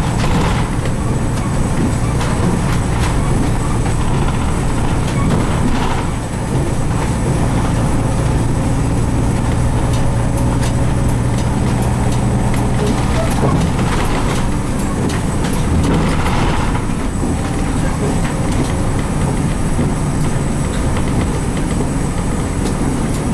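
The bus body rattles and clicks over bumps.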